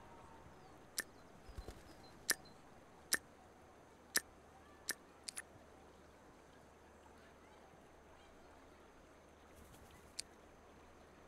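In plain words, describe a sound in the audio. Short menu clicks sound several times.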